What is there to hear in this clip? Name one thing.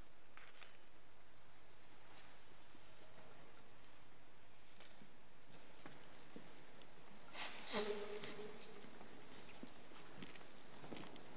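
Footsteps shuffle softly on a stone floor in a large echoing hall.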